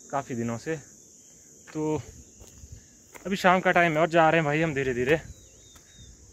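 A young man talks with animation close to the microphone, outdoors.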